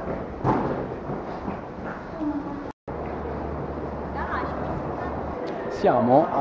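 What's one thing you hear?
A crowd murmurs and footsteps echo in a large hall.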